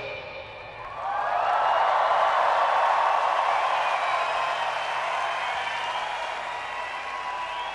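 A large crowd cheers loudly outdoors.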